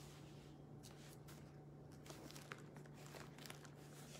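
Paper pages rustle softly.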